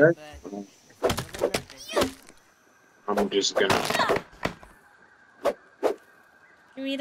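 Sharp chopping thuds strike grass stalks.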